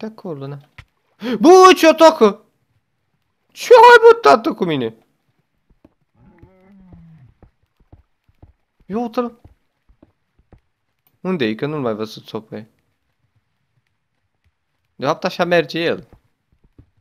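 A young man talks with animation into a close microphone, in short bursts with pauses.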